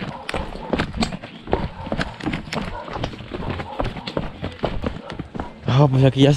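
Footsteps crunch and scuff on a rocky stone path.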